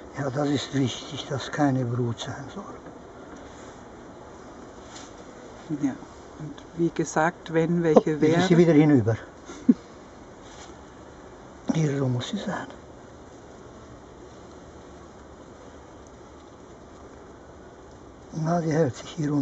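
Bees buzz softly and steadily.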